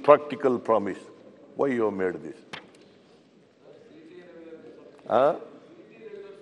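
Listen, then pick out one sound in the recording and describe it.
An elderly man speaks with emphasis into a microphone.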